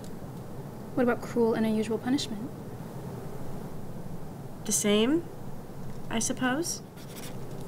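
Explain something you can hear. A young woman speaks nearby in short phrases.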